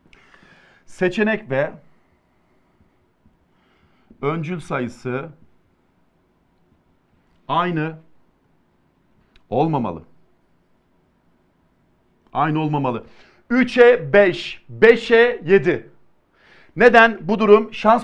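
A man speaks calmly and clearly, in short phrases with pauses, close to a microphone.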